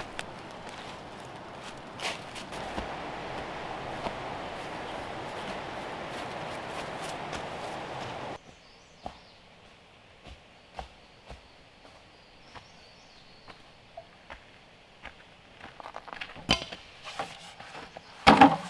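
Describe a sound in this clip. Footsteps rustle through dry leaves and undergrowth.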